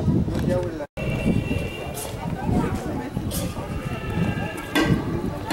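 People chatter outdoors in light wind.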